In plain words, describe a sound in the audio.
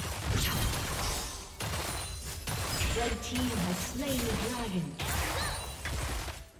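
Video game spell effects and combat sounds crackle and burst.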